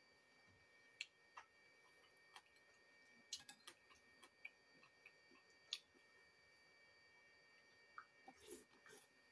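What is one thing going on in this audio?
A spoon clinks and scrapes against a plate.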